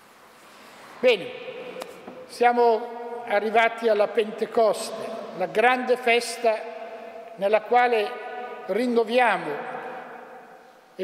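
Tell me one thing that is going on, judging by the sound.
An elderly man chants in song through a microphone, echoing in a large hall.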